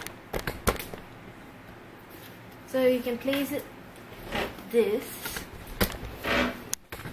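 A book is set down on a table with a soft thud.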